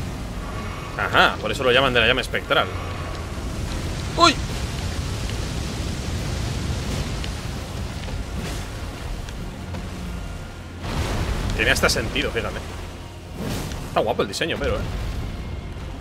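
A young man talks with animation close to a microphone.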